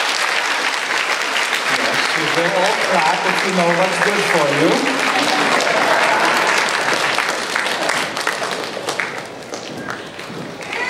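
An audience applauds loudly, then the clapping fades.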